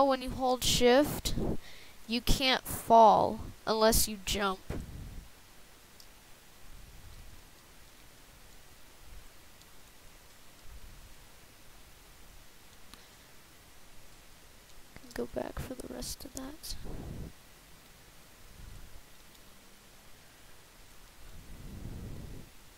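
Blocks crunch softly as a pickaxe digs through them.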